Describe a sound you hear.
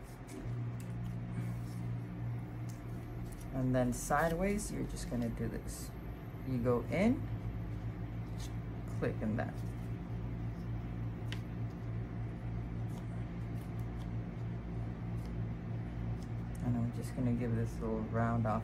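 Scissors snip through soft foam.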